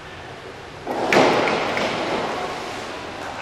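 A diver's body slaps into the water with a loud splash in an echoing indoor pool.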